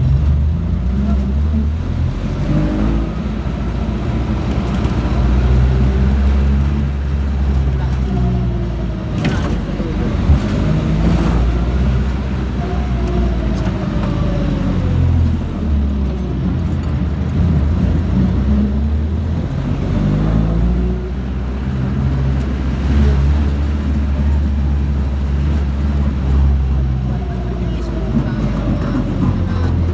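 A small engine rumbles and revs up and down close by.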